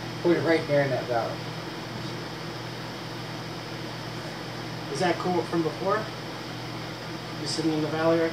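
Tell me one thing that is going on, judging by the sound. Two men talk casually nearby.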